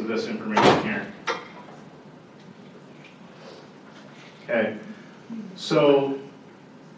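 A man speaks into a microphone over loudspeakers in a large echoing hall, pausing between phrases.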